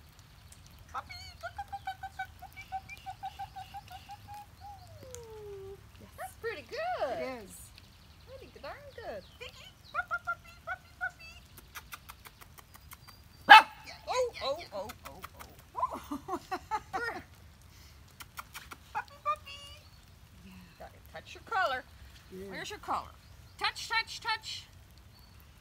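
A woman talks nearby to dogs in an animated, coaxing voice.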